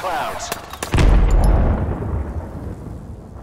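A heavy blast booms.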